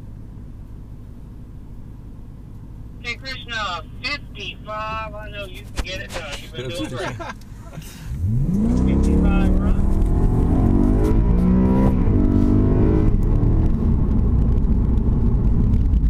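Tyres hum and rumble on the road.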